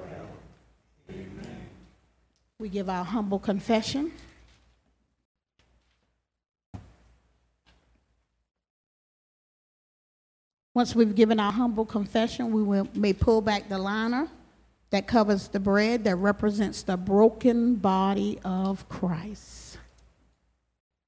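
A woman speaks into a microphone over a loudspeaker, in a room with some echo.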